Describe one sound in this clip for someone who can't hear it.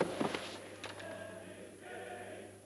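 A man breathes heavily and groans close by.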